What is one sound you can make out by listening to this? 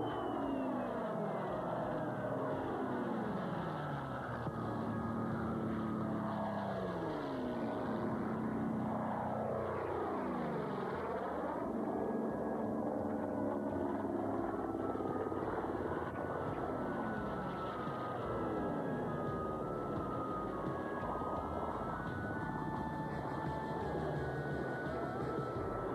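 Propeller plane engines roar loudly, rising and falling in pitch as the planes pass by.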